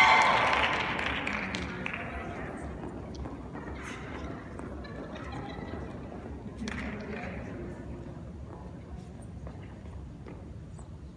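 Dance shoes tap and scuff on a wooden floor in a large hall.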